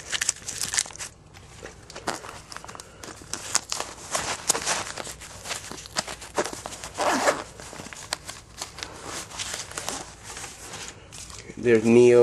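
Trading cards and a plastic case rustle and click close by as they are handled.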